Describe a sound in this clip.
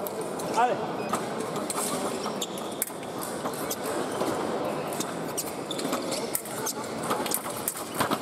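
Fencers' feet stamp and shuffle on the floor.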